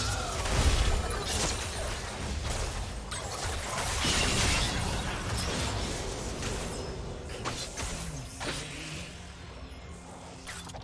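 Magic spells whoosh and crackle in a fast video game battle.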